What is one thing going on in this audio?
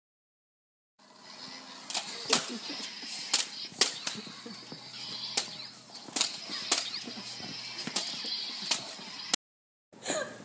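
Toy lightsabers buzz and clash as they swing.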